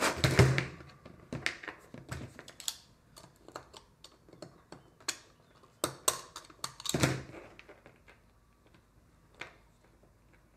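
Small metal tools click and tap on a table.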